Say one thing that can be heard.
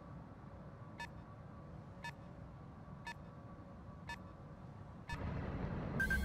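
A soft electronic blip repeats at a steady pace.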